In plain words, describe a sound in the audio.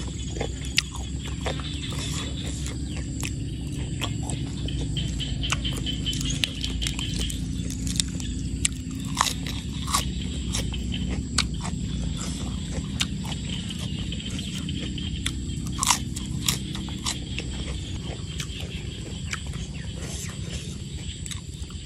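A young woman crunches and chews pork crackling up close.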